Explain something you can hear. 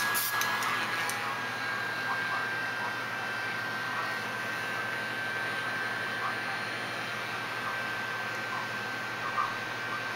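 A heat gun blows with a steady whirring hum.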